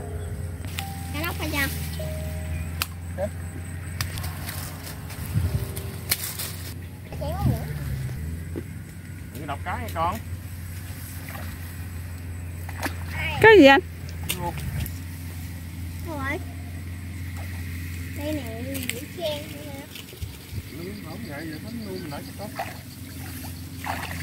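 Water splashes around a wading man.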